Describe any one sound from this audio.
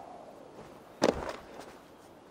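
A body lands with a heavy thud after a drop.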